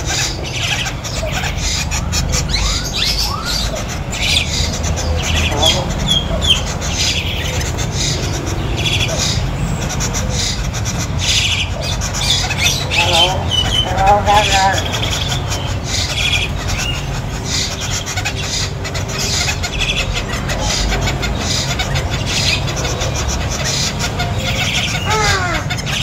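A bird chirps and whistles close by, in short repeated calls.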